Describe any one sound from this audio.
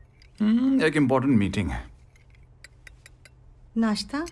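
Teacups clink softly.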